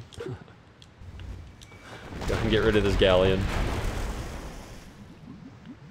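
Ship cannons boom and explosions rumble.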